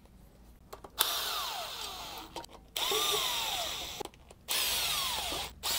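A cordless drill whirs in short bursts, driving in bolts.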